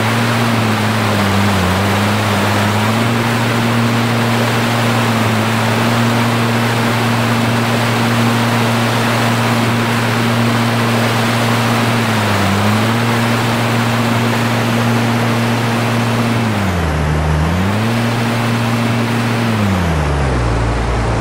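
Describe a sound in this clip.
Water rushes and splashes against the hull of a speeding boat.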